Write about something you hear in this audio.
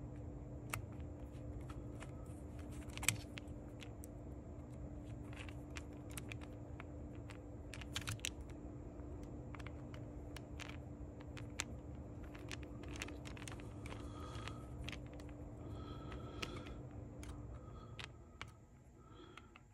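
A screwdriver clicks and scrapes against small metal parts.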